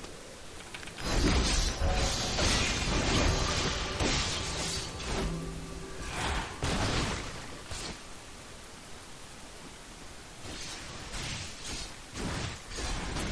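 Spell blasts and weapon hits crackle and thump during a video game battle.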